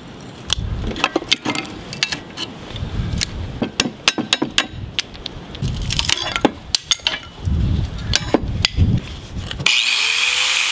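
A hammer strikes metal repeatedly.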